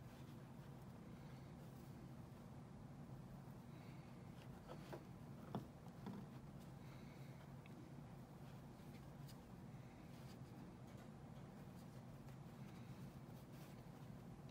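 Hands rustle and handle a soft fabric toy.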